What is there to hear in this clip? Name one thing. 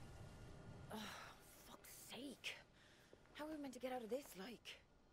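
A man mutters weakly.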